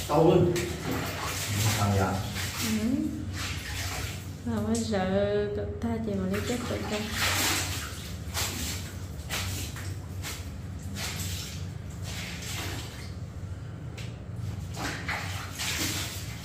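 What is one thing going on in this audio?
Wet clothes swish and splash in water as they are scrubbed by hand.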